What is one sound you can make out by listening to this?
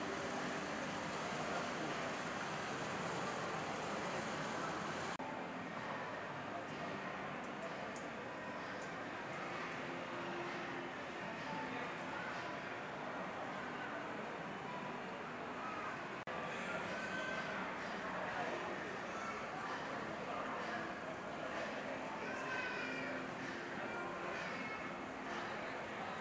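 A crowd murmurs and chatters in a large echoing hall.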